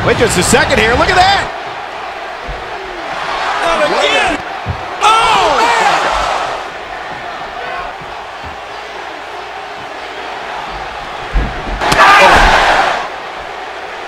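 A young boy shouts excitedly nearby.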